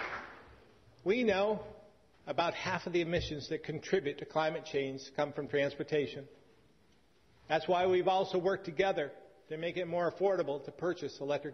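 A middle-aged man speaks formally into a microphone.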